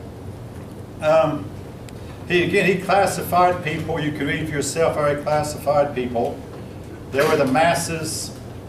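An older man speaks calmly, reading aloud.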